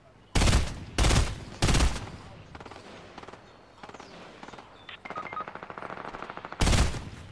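Loud shotgun blasts fire one after another, each booming briefly.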